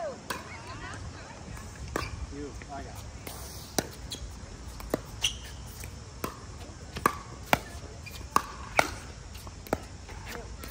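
Paddles strike a plastic ball with sharp hollow pops, back and forth in a quick rally.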